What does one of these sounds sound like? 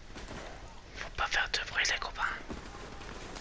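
A man speaks briefly and urgently, close by.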